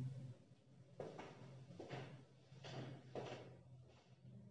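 Footsteps walk away across a hard floor.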